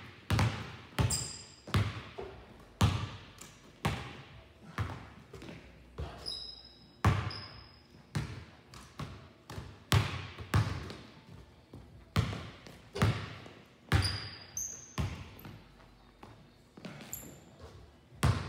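Sneakers squeak sharply on the hardwood floor.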